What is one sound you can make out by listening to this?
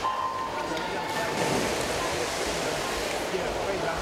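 Swimmers dive and splash into the water.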